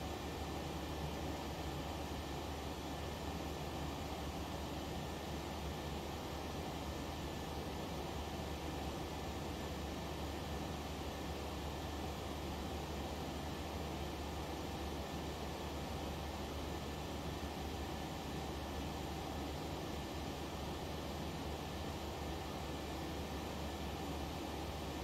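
A steady jet engine drone fills an aircraft cockpit.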